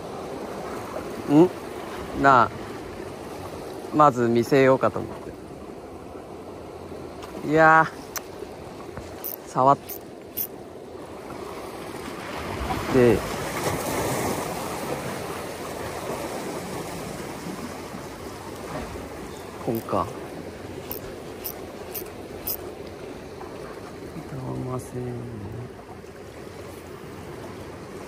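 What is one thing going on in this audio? Small waves lap and splash against rocks.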